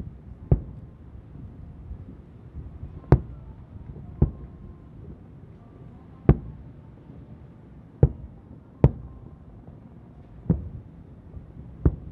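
Fireworks burst with distant booms that echo across the open air.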